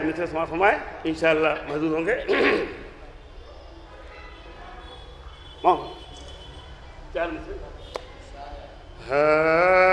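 A middle-aged man recites with feeling into a microphone, heard through a loudspeaker in an echoing hall.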